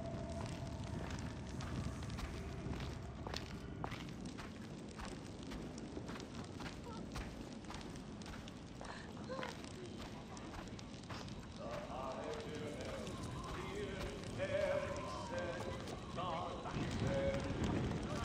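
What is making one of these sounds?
A torch flame crackles and roars softly.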